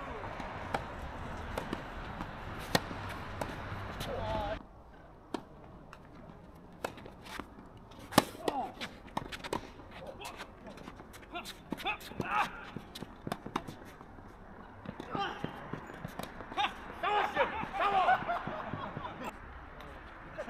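Tennis balls are struck with sharp pops of rackets.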